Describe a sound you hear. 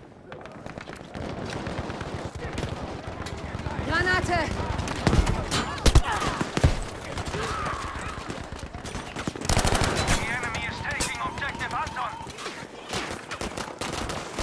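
Rapid gunfire crackles close by.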